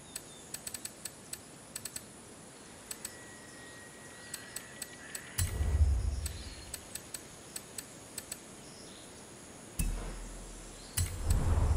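Short, soft menu ticks click again and again as a selection moves.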